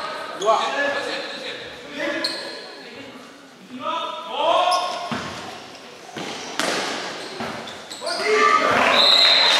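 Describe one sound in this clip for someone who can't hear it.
Young men and women shout and call out across a large echoing hall.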